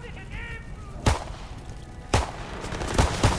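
Gunshots ring out in the open air.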